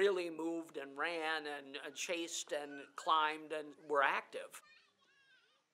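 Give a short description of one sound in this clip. Young children shout and chatter excitedly close by.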